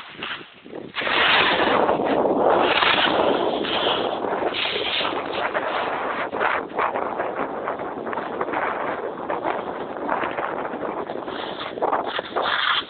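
A snowboard scrapes and hisses over hard snow.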